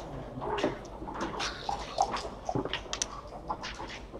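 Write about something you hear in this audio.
Dice rattle and tumble across a board.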